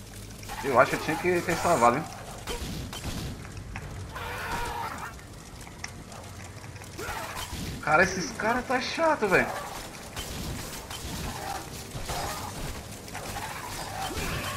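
Fire bursts with whooshing blasts.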